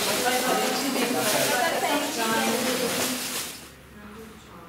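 Children sing together nearby.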